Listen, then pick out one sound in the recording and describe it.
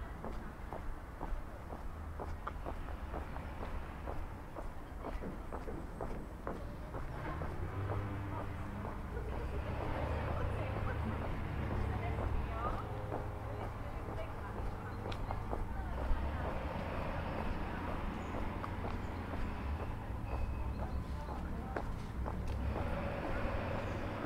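Footsteps tread steadily on a paved path outdoors.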